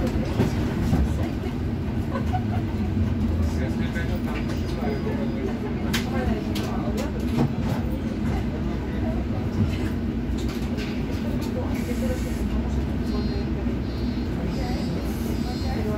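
A bus engine hums steadily from inside the bus.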